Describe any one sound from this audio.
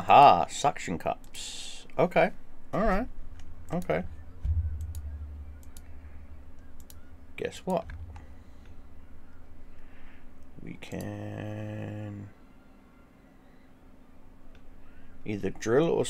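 A mouse clicks.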